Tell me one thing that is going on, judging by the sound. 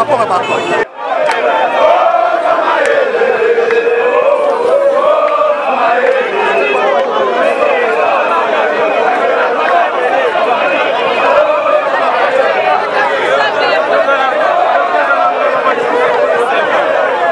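A large crowd chants and sings loudly outdoors.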